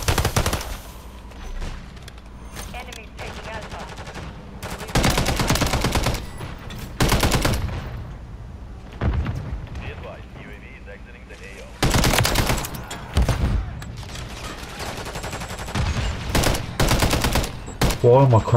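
Automatic gunfire rattles in short, loud bursts.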